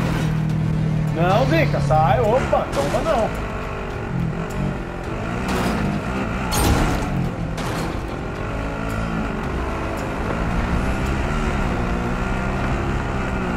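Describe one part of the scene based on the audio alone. Tyres bump and crunch over rough ground.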